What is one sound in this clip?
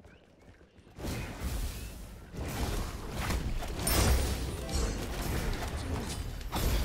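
Game combat effects whoosh and clash loudly.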